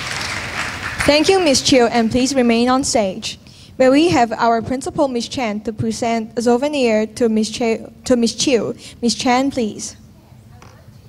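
A woman speaks calmly into a microphone, heard through loudspeakers in a large echoing hall.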